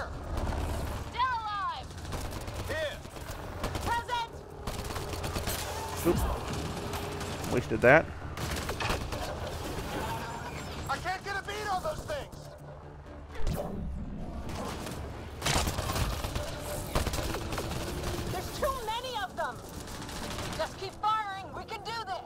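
Gunfire from a game rattles in quick bursts.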